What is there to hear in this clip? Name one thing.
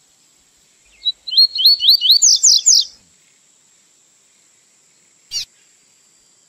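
A small songbird sings a quick run of bright, rising whistled notes.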